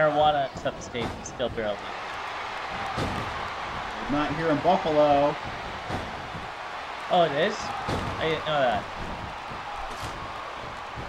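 Blows and bodies thud hard on a wrestling ring.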